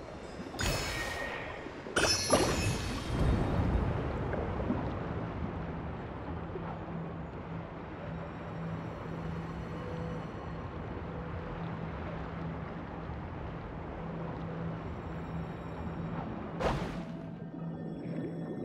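Water rushes and bubbles steadily underwater.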